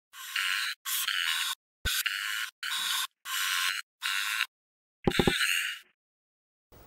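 A marker squeaks in short strokes across paper.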